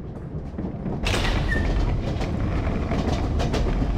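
A heavy metal door swings open with a creak.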